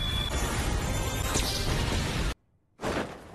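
Rocks crash and rumble loudly.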